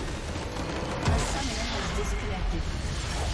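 A large structure explodes with a deep boom.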